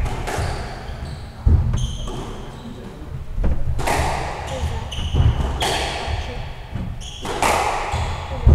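A squash ball smacks sharply off the walls with loud echoing thwacks.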